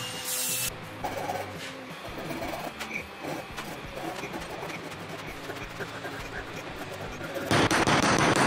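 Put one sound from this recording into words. A scraper clinks and scratches against metal bars.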